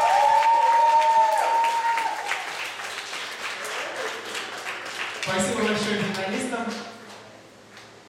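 Young women cheer and shout excitedly nearby.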